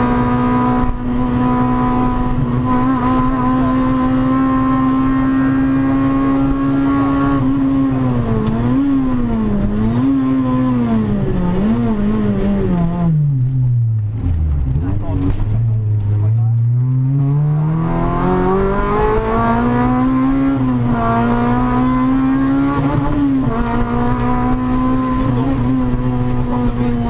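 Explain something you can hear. Tyres rumble and hiss on a rough road.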